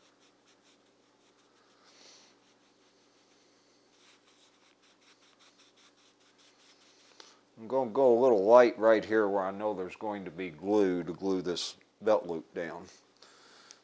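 A sponge dabs and rubs softly against wood.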